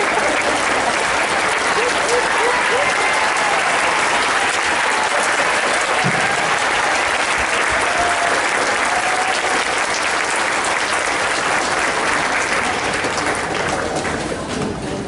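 An audience applauds loudly in a large echoing hall.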